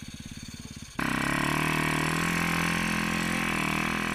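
A dirt bike engine revs loudly and holds a high roar.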